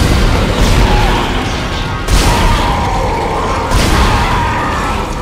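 A gun fires loud booming shots.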